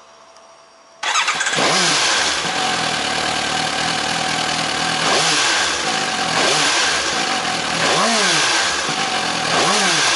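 A motorcycle engine starts and idles with a steady rumble.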